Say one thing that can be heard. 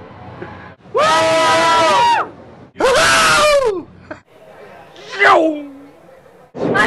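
A man imitates a roaring race car with his voice, close by.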